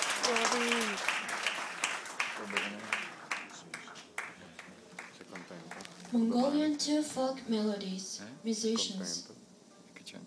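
A singer sings a bending melody with the ensemble.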